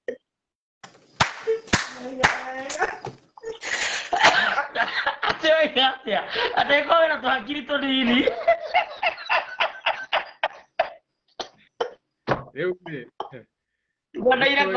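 A man laughs loudly and heartily over an online call.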